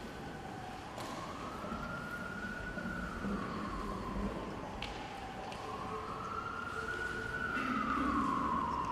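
A choir begins to sing slow, sustained notes in a large echoing hall.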